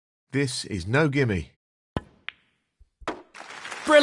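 A snooker cue strikes the cue ball.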